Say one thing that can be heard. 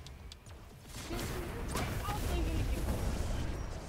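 Magic blasts crackle and roar in a fight.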